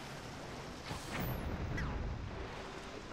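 A sharp hit strikes with a thud.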